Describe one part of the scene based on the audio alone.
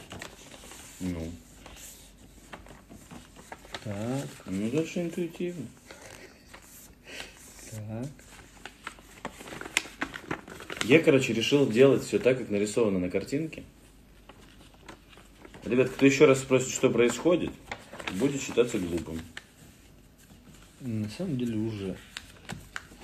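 A man talks calmly close to a microphone.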